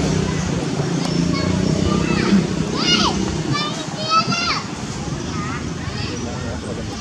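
A newborn macaque squeals in short high cries.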